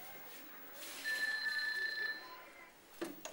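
A telephone rings.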